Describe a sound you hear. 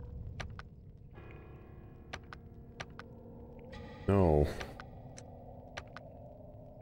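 Short electronic menu clicks tick several times.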